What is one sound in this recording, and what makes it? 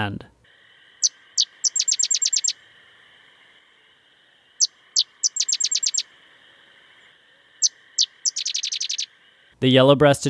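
A sedge wren sings a dry, chattering trill.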